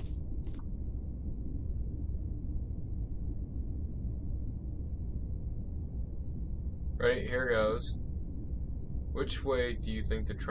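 A subway train rumbles low and steadily.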